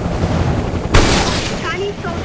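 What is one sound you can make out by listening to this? A missile whooshes away.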